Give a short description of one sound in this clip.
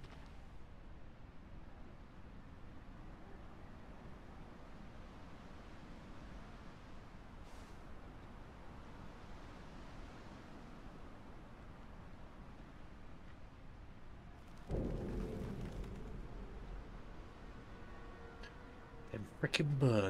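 Footsteps scuff slowly over concrete and rubble.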